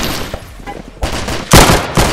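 A gun fires in bursts of loud shots.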